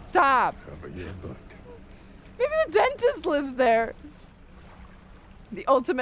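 A young woman laughs close to a microphone.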